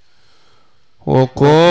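A man chants loudly through a loudspeaker.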